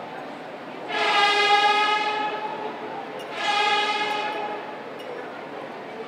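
A man sings a short drawn-out chant.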